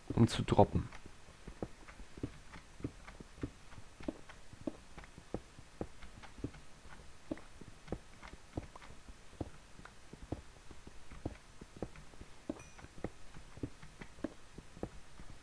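A pickaxe chips at stone with quick, repeated taps.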